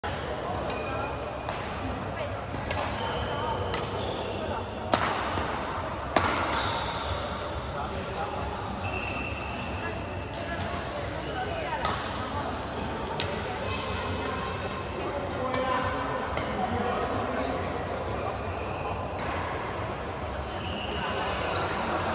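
Rackets strike a shuttlecock with sharp smacks in a large echoing hall.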